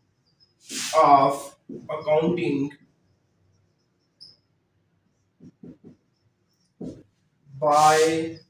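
A man speaks clearly in a lecturing tone, close by, in short phrases.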